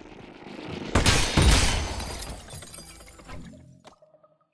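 A gun fires a loud blast that echoes away.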